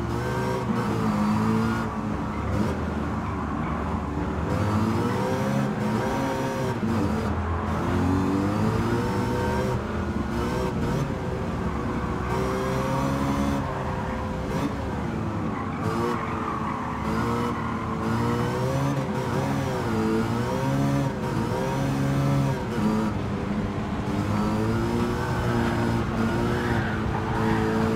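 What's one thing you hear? A racing car engine roars loudly, revving up and down as gears shift.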